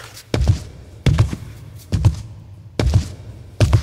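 Loud gunshots boom with a ringing echo.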